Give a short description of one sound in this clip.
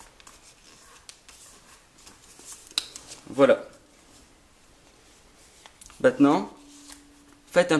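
Paper rustles and crinkles softly as it is folded.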